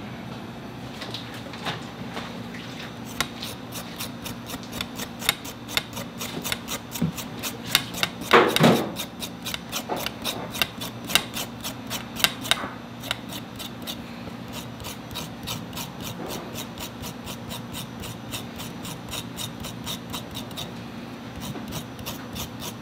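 A knife blade scrapes rapidly along a root, with quick rasping strokes.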